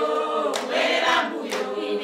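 A group of children sings loudly together.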